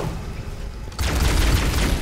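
An energy weapon fires rapid bursts of shots.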